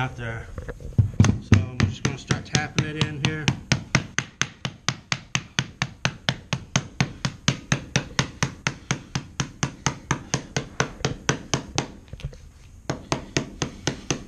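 A rubber mallet taps rapidly and steadily on a floor.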